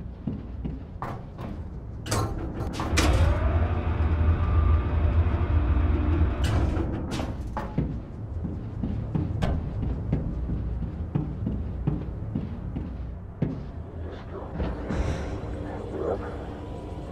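Metal clanks and knocks sharply now and then.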